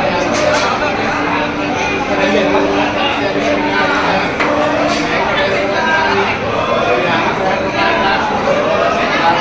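A man chants prayers steadily nearby.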